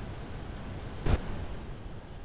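An ejection seat fires with a sharp bang.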